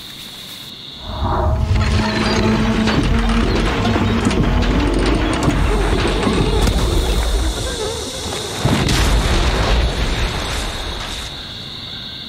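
A jetpack roars with a loud rushing blast.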